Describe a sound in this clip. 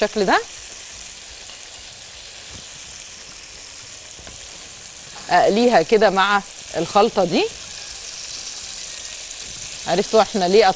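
Oil sizzles softly in a pan.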